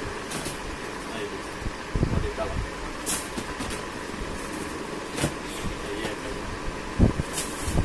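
A cardboard box is set down with a soft knock.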